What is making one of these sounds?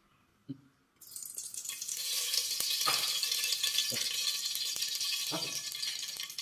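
Hot oil sizzles loudly in a pan.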